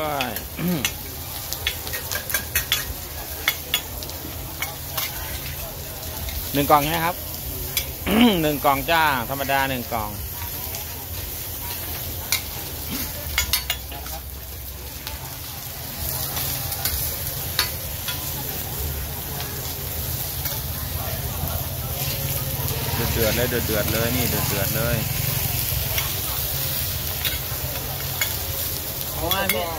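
Food sizzles steadily on a hot griddle.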